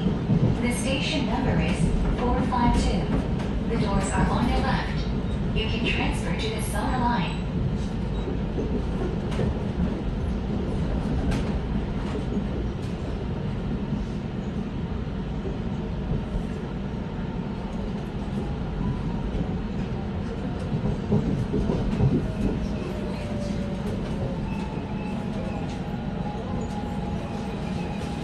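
An electric commuter train rumbles along the track.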